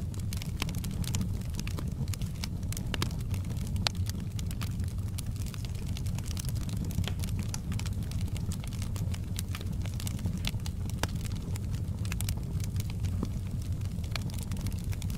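A fire roars with a low, steady rumble.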